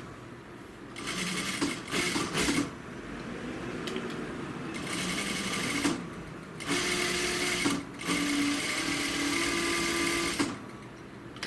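A sewing machine whirs in quick bursts as it stitches.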